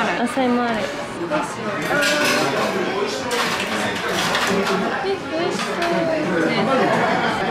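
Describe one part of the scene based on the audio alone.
Two young women talk with animation close by.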